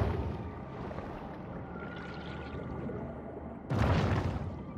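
Water rumbles in a low, muffled underwater wash.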